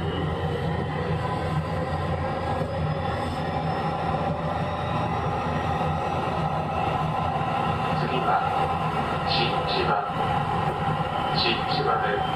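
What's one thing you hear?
An electric train hums and rumbles slowly along the tracks.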